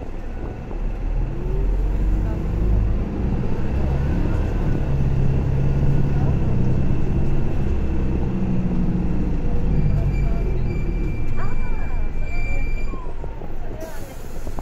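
A bus pulls away, its engine rumbling louder as it gathers speed.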